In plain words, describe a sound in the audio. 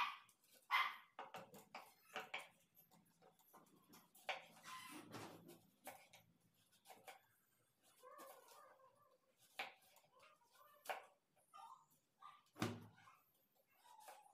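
A knife knocks and scrapes against a wooden table at irregular intervals.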